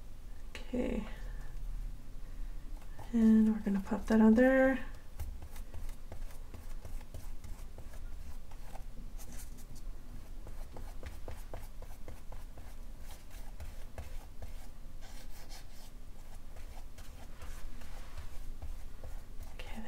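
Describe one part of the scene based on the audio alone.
A paintbrush dabs and scrubs softly on paper.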